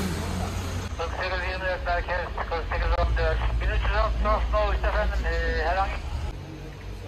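A man talks nearby outdoors.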